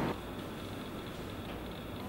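Paper rustles as a page is handled.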